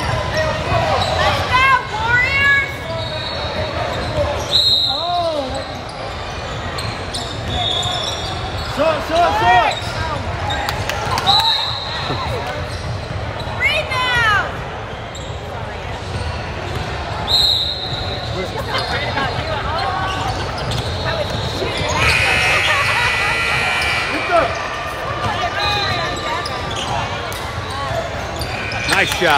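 A crowd murmurs in a large echoing gym.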